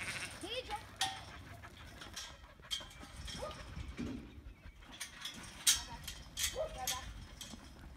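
Metal gates clank and rattle.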